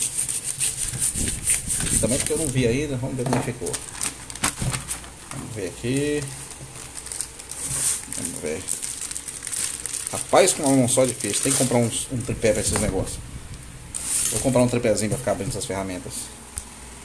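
Plastic packaging rustles and crinkles as it is torn open.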